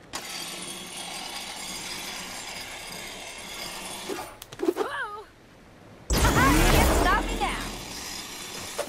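Metal scrapes and hisses as something grinds along a rail.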